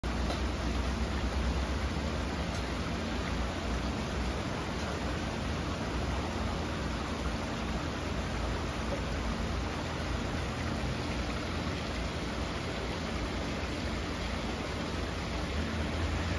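Water rushes and gurgles steadily down a narrow stream bed.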